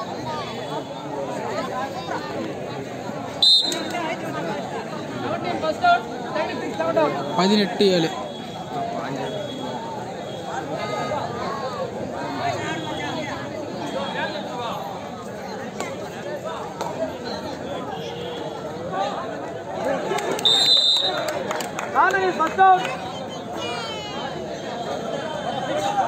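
A large outdoor crowd of men chatters and shouts.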